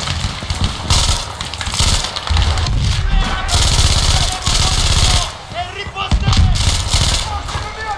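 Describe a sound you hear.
A heavy machine gun fires a long, rattling burst.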